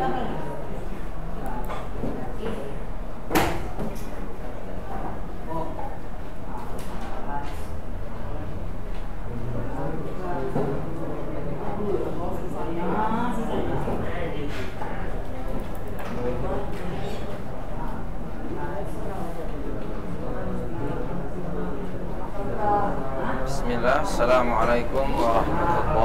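Young people talk quietly nearby.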